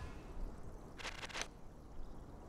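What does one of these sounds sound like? Cards flip over with quick shimmering clicks.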